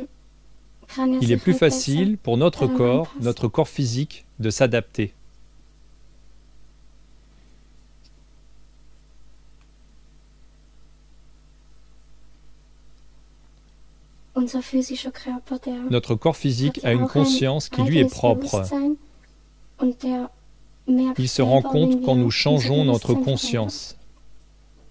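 A young girl speaks calmly over an online call.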